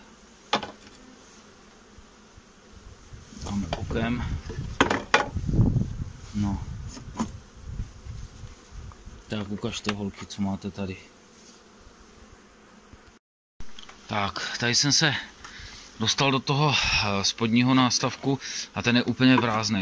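Honeybees buzz close by in a low, steady hum.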